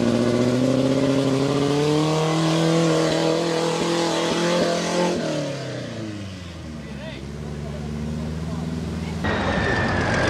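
A truck engine revs loudly, then winds down.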